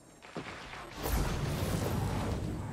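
An explosion bursts with shattering debris.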